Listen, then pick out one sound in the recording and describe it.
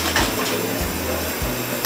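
Water runs from a tap into a basin.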